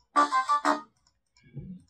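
A short synthesized musical phrase plays from computer speakers.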